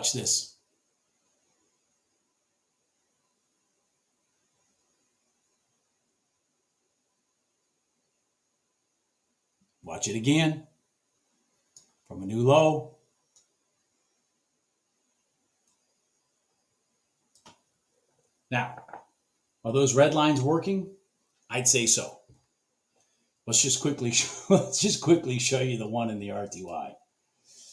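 A man talks calmly and close to a microphone, in short bursts with pauses.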